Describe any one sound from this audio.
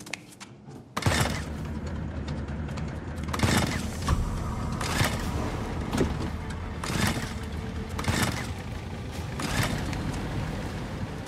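A generator engine rattles and roars as its starter cord is pulled again and again.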